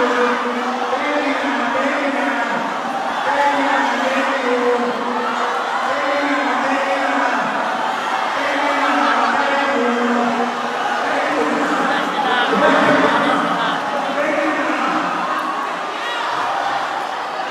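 A man sings loudly through a microphone and loudspeakers.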